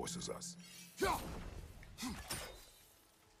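An axe whooshes through the air.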